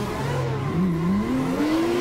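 An exhaust pops and backfires.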